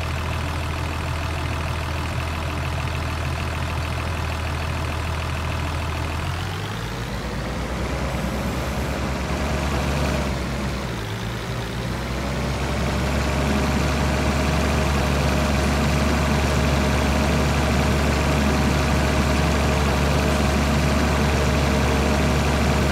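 A tractor engine drones steadily, its pitch rising and falling as it speeds up.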